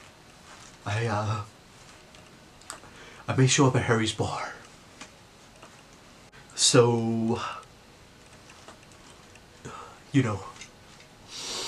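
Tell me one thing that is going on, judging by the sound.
A young man talks close by in short, dramatic bursts.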